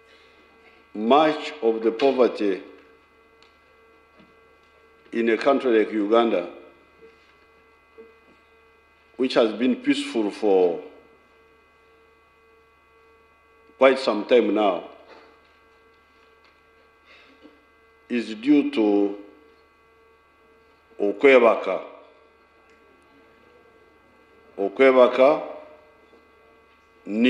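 An elderly man speaks slowly in short phrases with long pauses, heard through a microphone.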